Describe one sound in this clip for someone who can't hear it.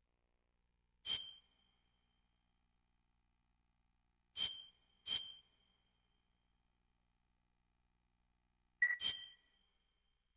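Short, bright electronic menu beeps sound a few times.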